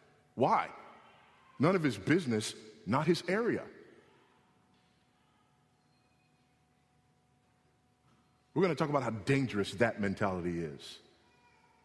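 A man speaks steadily into a microphone, with pauses.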